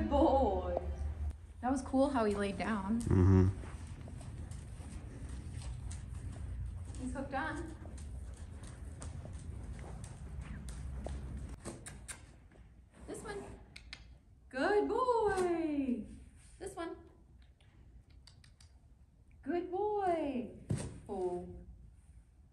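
A woman talks calmly and warmly, close by.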